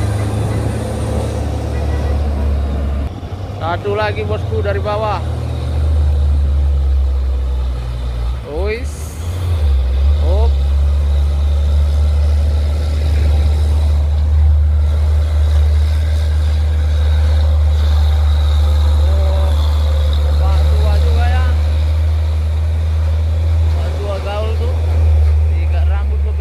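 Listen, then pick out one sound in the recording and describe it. A heavy truck's diesel engine rumbles loudly as the truck climbs past.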